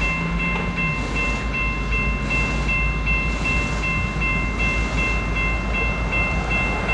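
A diesel locomotive engine rumbles steadily as it rolls slowly closer.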